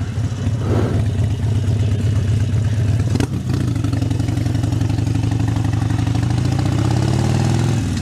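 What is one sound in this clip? A motorcycle engine rumbles steadily close by as the bike rides along.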